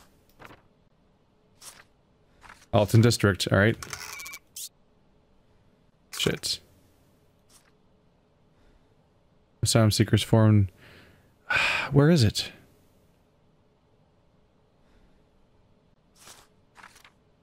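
Papers rustle and slide as documents are handled.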